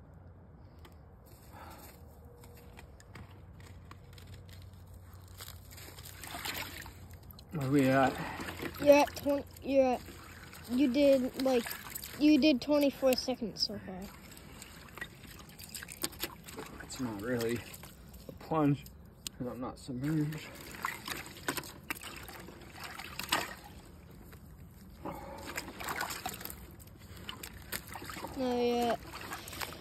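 Water splashes gently in a tub.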